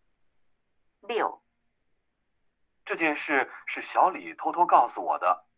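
A young woman speaks calmly into a microphone, as if in an online call.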